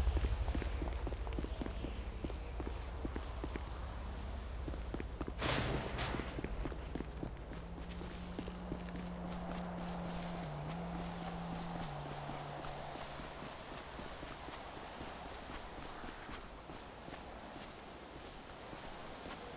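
Footsteps run quickly on pavement and grass.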